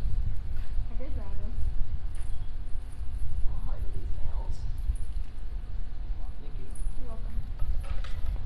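A man talks casually nearby.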